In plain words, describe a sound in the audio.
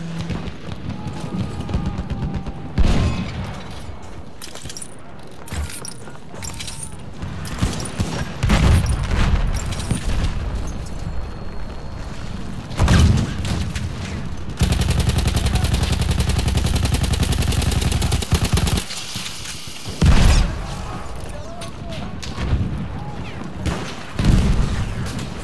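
Distant explosions and gunfire rumble on and off.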